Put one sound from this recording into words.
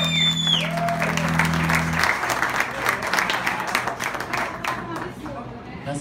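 A live band plays loudly on drums and electric guitars, then stops.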